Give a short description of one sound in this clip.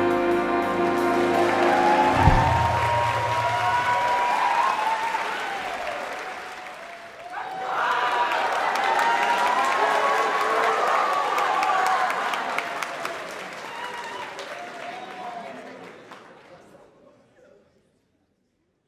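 A big band plays in a large, echoing hall.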